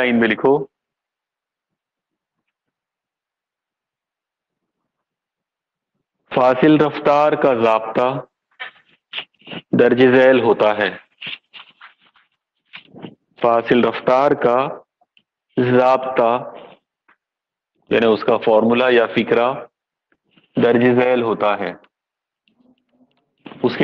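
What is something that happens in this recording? A middle-aged man speaks calmly and clearly, close by, pausing between phrases.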